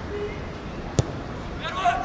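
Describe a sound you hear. A football is kicked hard with a sharp thud.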